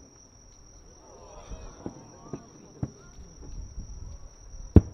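Fireworks crackle after bursting.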